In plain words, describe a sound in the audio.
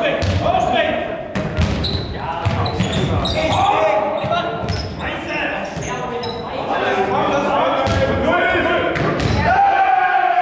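A ball is kicked and thuds in a large echoing hall.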